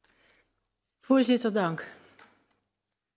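A woman begins speaking through a microphone.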